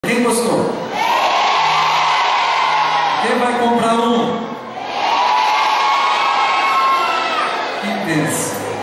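A man talks loudly through a microphone and loudspeakers in a large echoing room.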